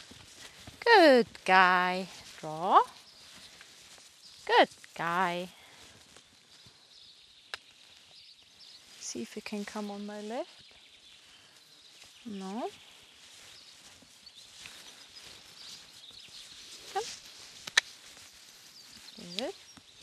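A young woman talks and calls out in a high, sing-song voice.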